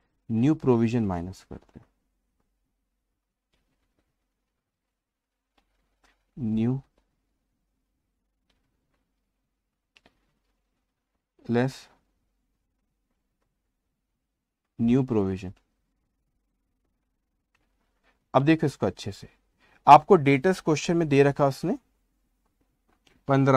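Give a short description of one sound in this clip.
A man speaks calmly into a close microphone, in short phrases with long pauses.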